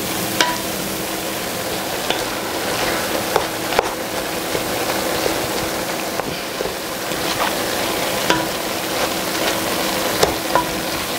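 Minced meat sizzles steadily in a hot pan.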